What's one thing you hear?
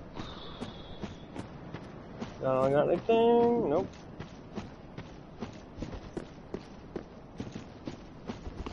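Armoured footsteps run quickly over rough ground.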